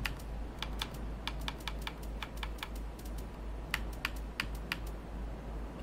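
Soft game menu clicks tick in quick, uneven succession.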